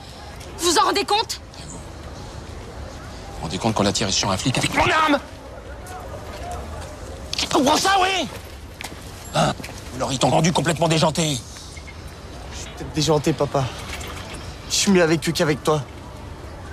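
A middle-aged man speaks firmly and with emotion, close by.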